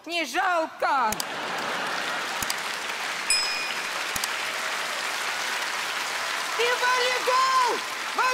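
An elderly-sounding woman speaks with animation on a stage.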